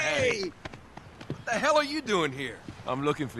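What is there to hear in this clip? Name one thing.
Two young men shout a greeting together.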